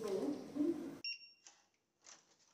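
An electronic door lock beeps.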